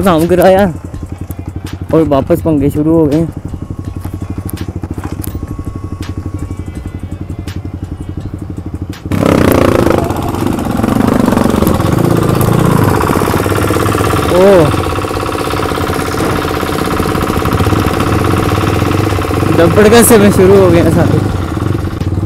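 A motorcycle engine revs up and down in short bursts.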